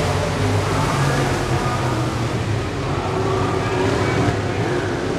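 Race car engines roar loudly as cars speed around a track.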